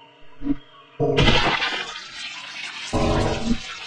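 A loud explosion booms and sends debris crashing down.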